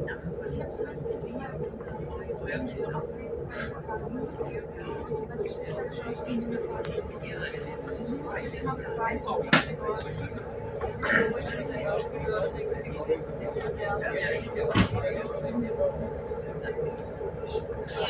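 A train rumbles and hums steadily from inside a carriage.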